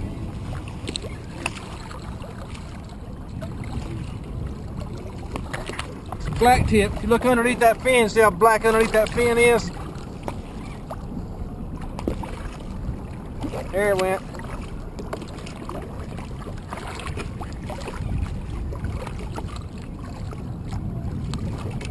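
Water splashes and laps close by.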